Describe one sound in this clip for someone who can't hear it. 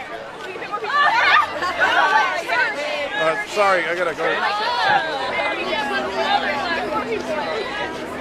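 A young woman laughs excitedly.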